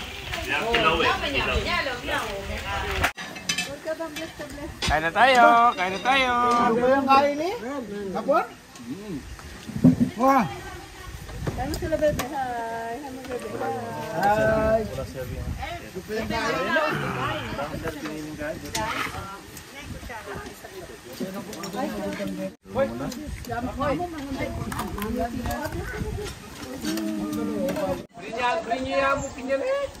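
Several men and women talk and chatter nearby outdoors.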